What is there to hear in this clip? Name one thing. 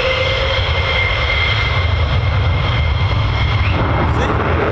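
A jet engine whines at a high, steady pitch.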